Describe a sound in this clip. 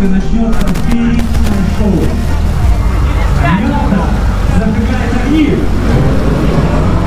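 A crowd of people on a boat chatter and call out.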